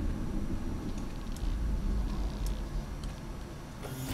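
A motion tracker beeps softly.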